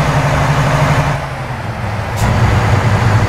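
A truck engine briefly drops away during a gear change.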